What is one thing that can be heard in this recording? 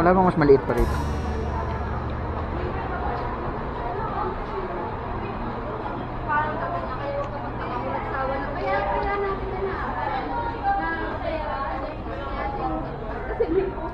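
People chatter in a busy indoor room.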